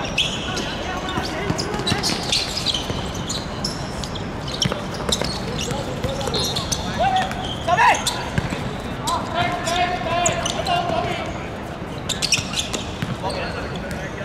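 Sneakers scuff and squeak on the court surface.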